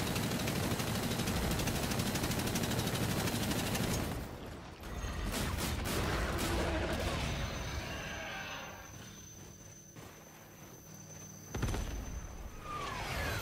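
Guns fire.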